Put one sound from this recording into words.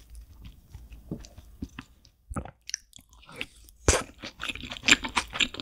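A young woman chews food loudly and wetly close to a microphone.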